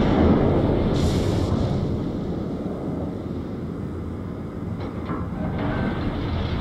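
Shells hit the water with heavy splashes.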